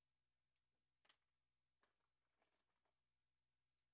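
A marker clatters down onto a table.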